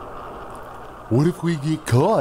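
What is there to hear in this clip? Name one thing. A second man speaks lazily and drawls.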